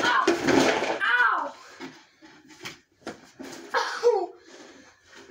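A young boy shouts and squeals excitedly.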